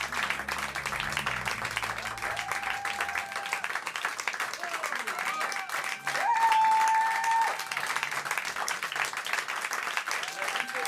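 A large audience chatters and cheers.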